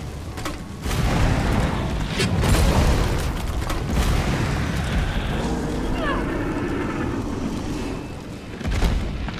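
Flames roar and crackle steadily.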